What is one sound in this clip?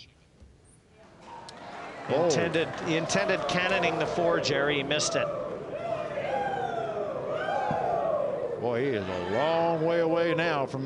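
A large crowd cheers and chants loudly.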